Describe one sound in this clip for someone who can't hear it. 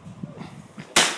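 A handgun fires a sharp shot nearby.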